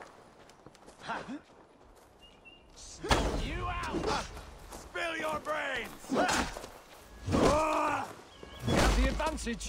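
Swords clash and thud in a fight.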